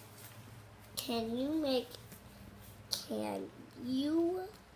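A young child speaks in a high, animated voice close by.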